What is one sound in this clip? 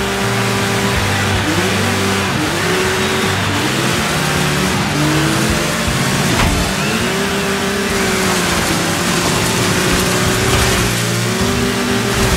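A buggy engine roars and revs up through the gears.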